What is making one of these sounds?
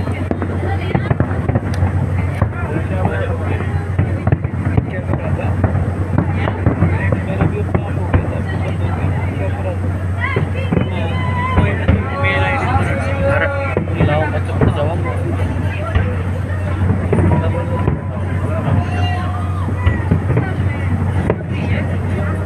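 Fireworks crackle and boom in rapid bursts in the distance.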